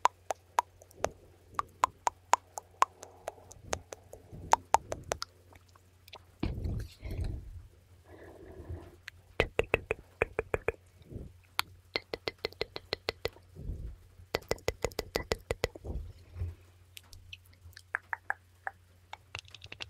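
Fingers tap and click rapidly right against a microphone.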